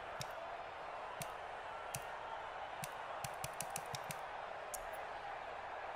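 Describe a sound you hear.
Short menu clicks tick as a list scrolls.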